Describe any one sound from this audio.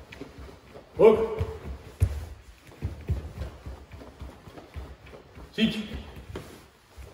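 A man calls out short counts in a clear voice.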